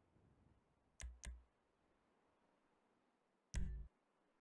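Short menu clicks sound from a game.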